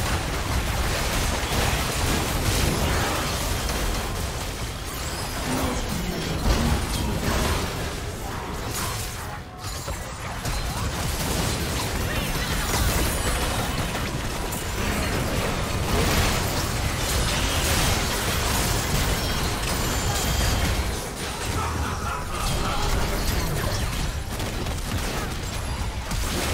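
Magic blasts and clashing weapons crackle and boom in a hectic fight.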